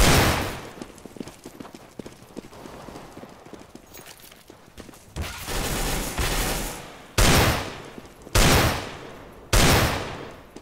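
Pistol shots ring out sharply, one at a time, each echoing away.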